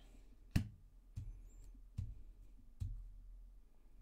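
Cards tap and slide on a wooden table.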